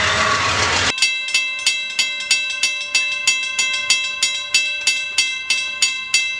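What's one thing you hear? A railroad crossing bell rings.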